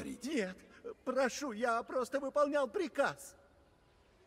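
An elderly man answers pleadingly.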